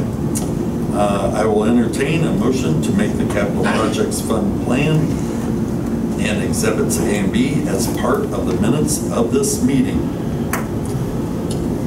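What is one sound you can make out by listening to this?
A man speaks calmly through a microphone in a room.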